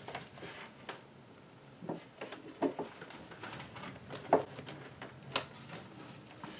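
A laptop is lifted and set down on a desk with soft knocks.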